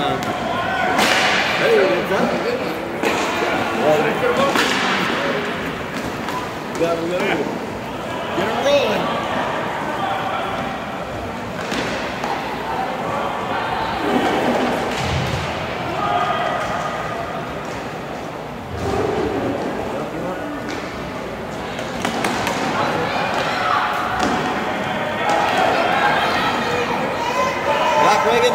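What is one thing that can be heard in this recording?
Hockey sticks clack and tap against a ball in a large echoing hall.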